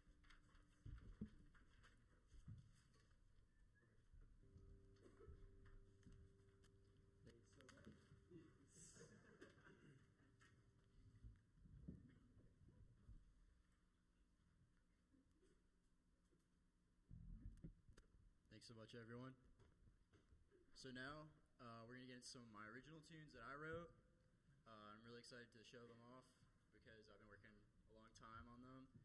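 A small jazz band plays softly.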